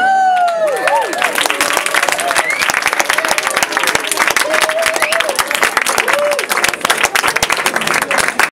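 A crowd applauds loudly.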